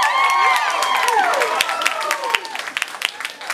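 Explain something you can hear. An audience cheers and whistles loudly.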